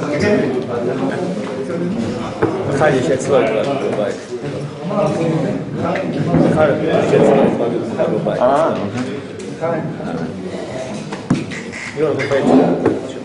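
An elderly man talks with animation nearby.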